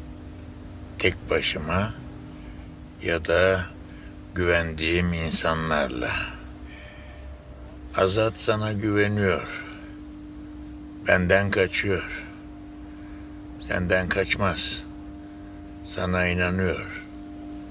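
An elderly man speaks calmly and gravely close by.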